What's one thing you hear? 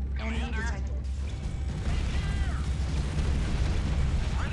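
Explosions boom and guns fire in a game.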